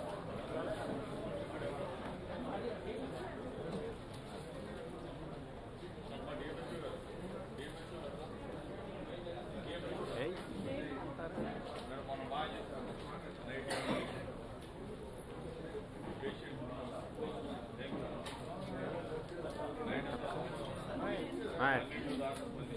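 A crowd murmurs and chatters in a hall.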